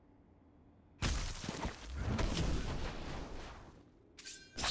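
Fire bursts with a roar in a video game.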